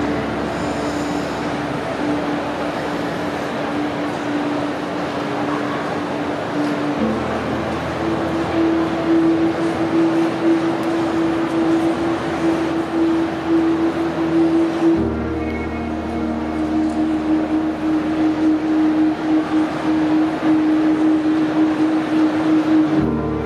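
Slow droning music plays through loudspeakers in a large hall.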